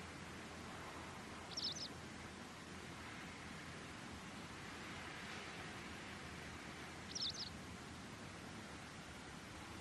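Wind blows steadily across open ground.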